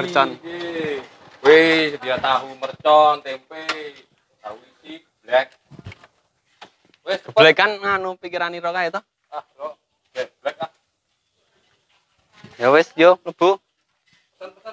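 Men talk with each other in short exchanges nearby.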